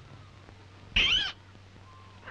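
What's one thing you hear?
A young woman laughs briefly.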